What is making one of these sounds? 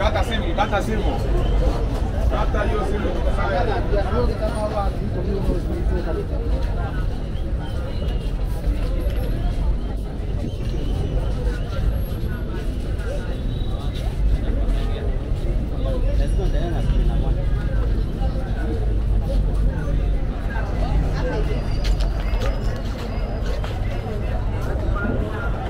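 A busy crowd chatters outdoors, with many voices of men and women mixed together.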